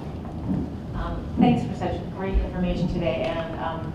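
A woman speaks calmly to a small group.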